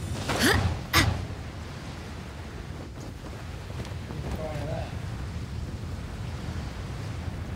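Wind rushes steadily while gliding through the air.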